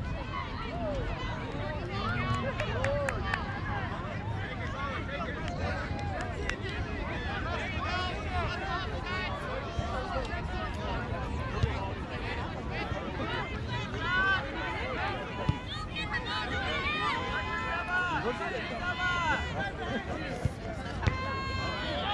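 A crowd of adults and children chatters and calls out nearby outdoors.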